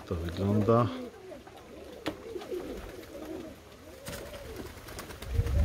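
Pigeons coo softly in low, rolling calls.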